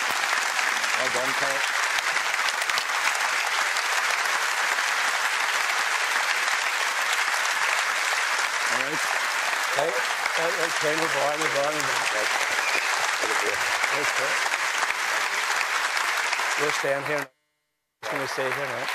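A man talks nearby over the applause.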